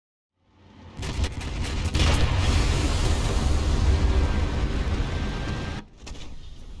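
A tank explodes with a loud, roaring blast that rumbles on.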